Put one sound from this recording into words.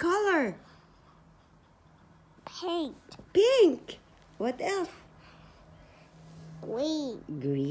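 A toddler speaks in short, high-pitched words close by.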